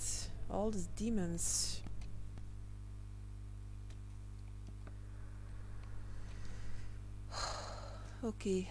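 A young woman speaks briefly into a close headset microphone.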